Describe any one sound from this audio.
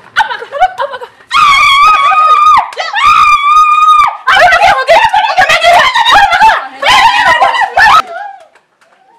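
A young woman shouts loudly and frantically nearby.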